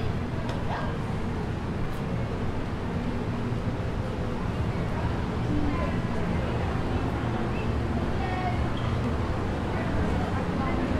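Footsteps of several people walk on pavement.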